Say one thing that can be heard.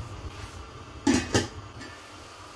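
A glass dish knocks against a metal pan.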